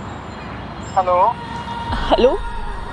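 A young woman talks into a phone.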